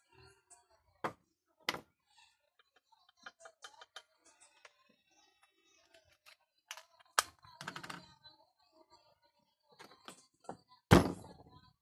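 Small objects knock against a wooden table.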